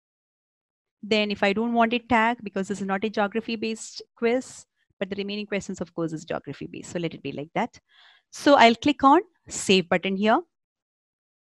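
A young woman speaks calmly and steadily into a microphone, close up.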